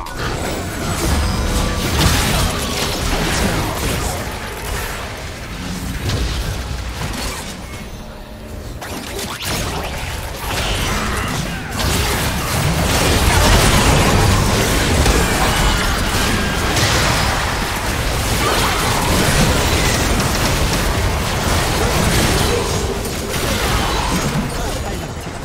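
Game impacts and blasts thud in quick succession.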